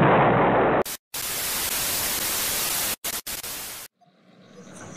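Static hisses loudly.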